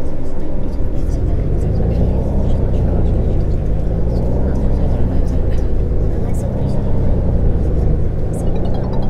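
A bus engine revs up and down as the bus pulls away.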